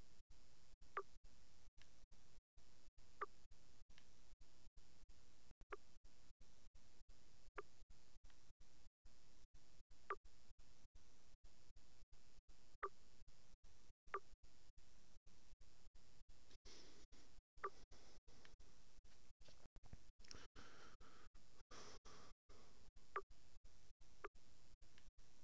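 A short electronic blip sounds now and then.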